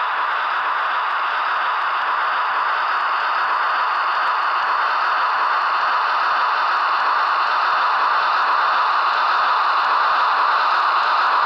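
A small electric motor whirs steadily as a model locomotive rolls along its track.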